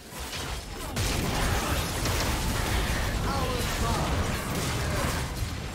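Magic spells blast and crackle in a hectic fight.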